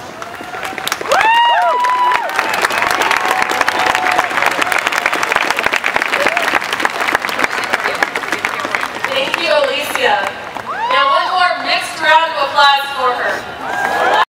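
A large outdoor crowd cheers and whoops loudly.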